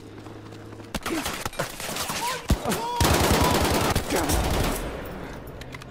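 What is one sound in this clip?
Rapid gunfire bursts loudly and echoes.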